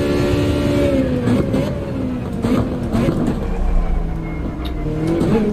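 A racing car engine roars and drops in pitch as the car brakes and shifts down.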